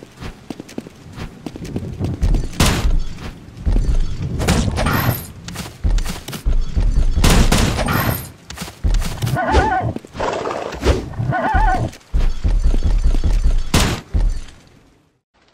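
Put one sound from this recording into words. Heavy impact sounds of a video game sword fight thud and crash.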